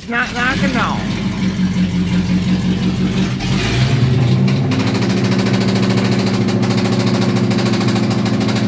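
A car engine idles with a steady rumble.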